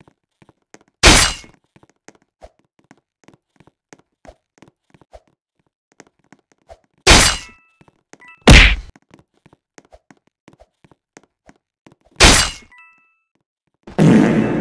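A blade slashes with a loud whoosh.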